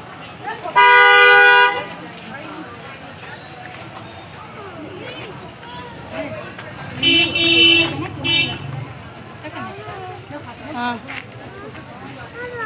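A crowd of people chatters and murmurs nearby outdoors.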